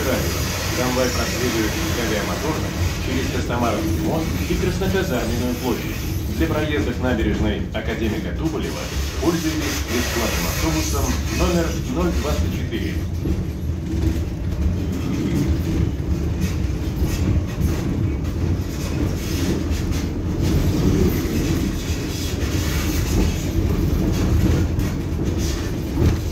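A vehicle's engine rumbles low and steadily while driving.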